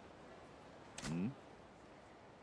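A man murmurs a short questioning sound.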